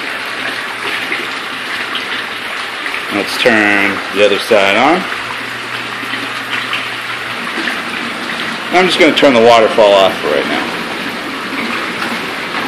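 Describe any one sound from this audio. Water jets churn and bubble steadily in a tub.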